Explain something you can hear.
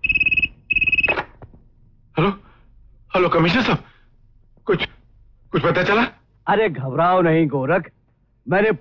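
A man speaks on a phone with animation.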